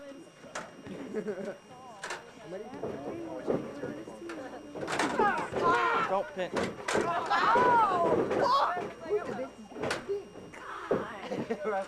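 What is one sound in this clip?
A metal ladder clatters.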